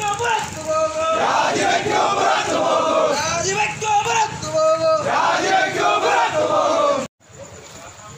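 A crowd of men chants slogans loudly outdoors.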